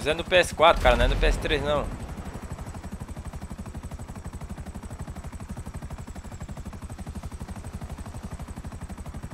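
A helicopter's rotor chops steadily and fast nearby.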